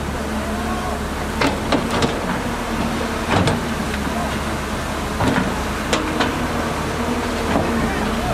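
A diesel excavator engine rumbles steadily nearby.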